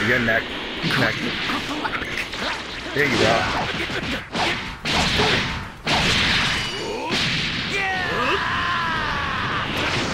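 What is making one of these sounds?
Rushing whooshes sweep past quickly.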